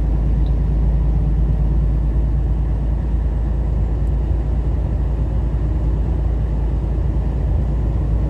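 Tyres roll on the road with a steady low rumble.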